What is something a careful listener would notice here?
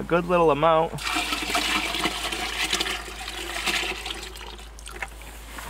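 Liquid pours and splashes from one plastic bucket into another.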